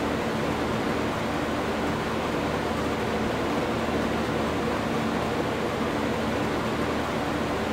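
A harvester engine drones steadily.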